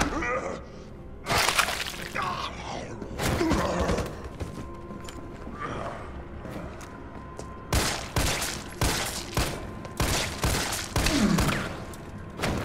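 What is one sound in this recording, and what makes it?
A zombie groans and snarls loudly.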